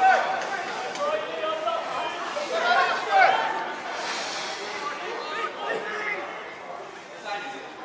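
Young players shout and call out to each other across an outdoor pitch.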